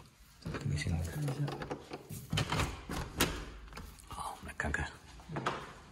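A door handle clicks as a door is opened.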